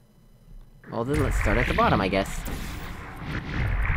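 A futuristic gun fires with a sharp electronic zap.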